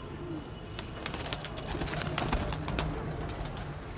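Pigeons flap their wings in a flurry.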